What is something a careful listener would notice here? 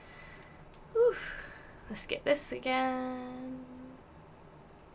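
A young woman speaks into a close microphone.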